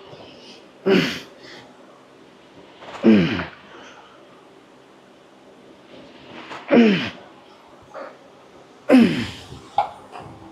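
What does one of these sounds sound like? A man grunts loudly with effort, again and again.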